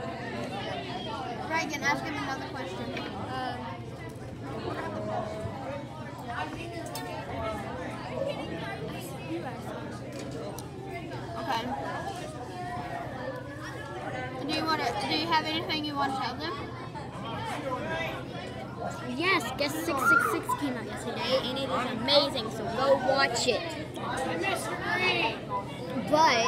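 Many voices chatter in a large echoing room.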